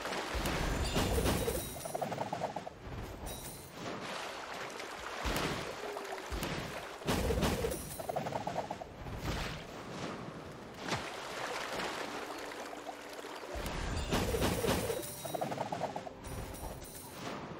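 A bright chime rings.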